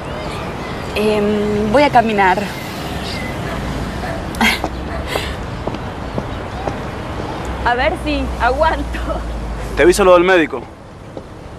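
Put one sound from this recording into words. A young man speaks quietly up close.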